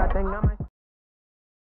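A young man speaks with animation into a microphone over loudspeakers.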